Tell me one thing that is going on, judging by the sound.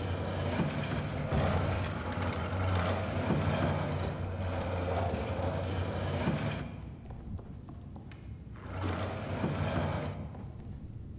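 A wooden crate scrapes slowly across a creaky wooden floor.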